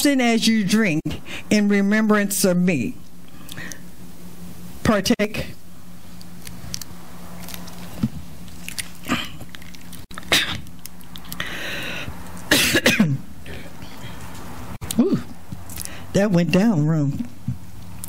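A middle-aged woman speaks with feeling into a close microphone, pausing often.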